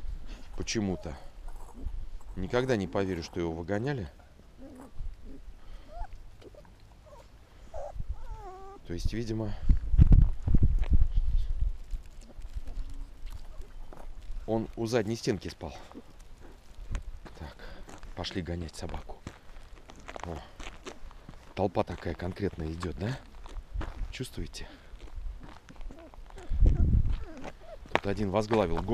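Small paws patter and crunch on snow.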